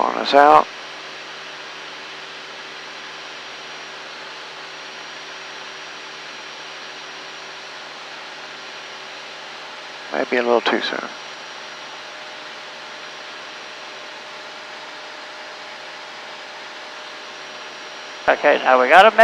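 A small plane's engine drones steadily inside the cabin.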